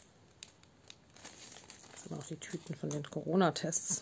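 Small plastic beads rattle as they are poured out.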